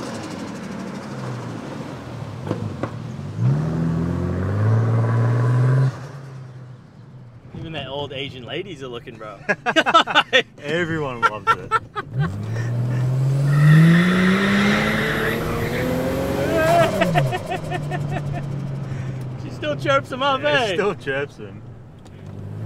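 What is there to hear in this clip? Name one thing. A car engine revs up and shifts through gears.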